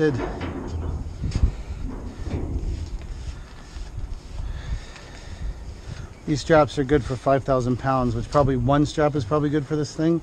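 A nylon strap rustles as it is pulled tight.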